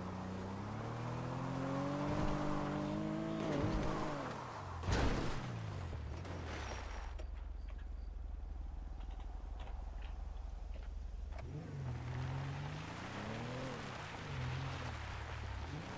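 A car engine revs and strains over rough ground.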